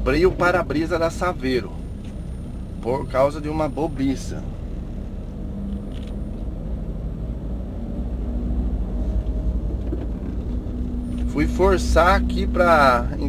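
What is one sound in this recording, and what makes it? A car engine hums steadily with a low rumble.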